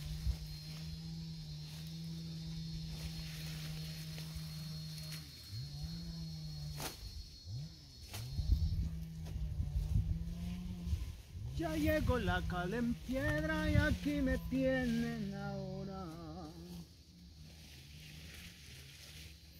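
Leafy plants rustle as they are pulled from the ground.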